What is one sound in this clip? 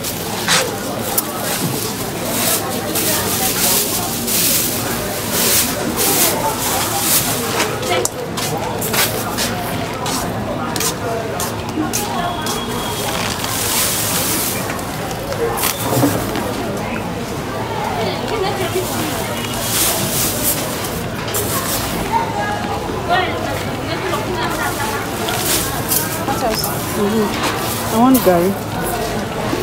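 Grains of rice pour and rattle into a plastic bag.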